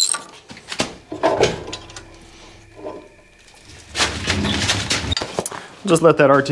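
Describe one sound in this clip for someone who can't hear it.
Metal parts clunk and scrape as a heavy radiator is shifted.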